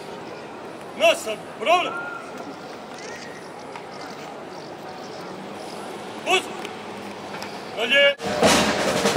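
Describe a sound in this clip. A man shouts sharp commands outdoors.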